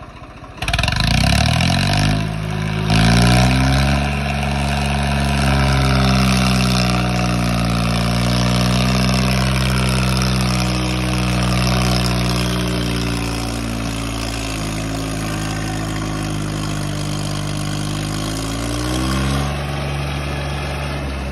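A tractor engine roars loudly up close, revving hard.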